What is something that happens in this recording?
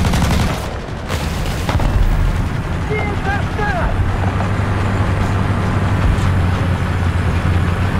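A tracked vehicle's engine rumbles steadily while it drives.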